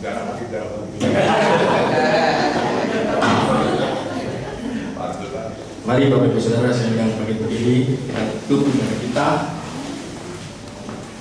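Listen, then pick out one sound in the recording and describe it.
A man speaks with animation into a microphone, heard through loudspeakers in an echoing hall.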